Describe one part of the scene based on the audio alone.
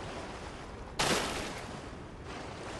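A heavy weapon strikes with a loud crash.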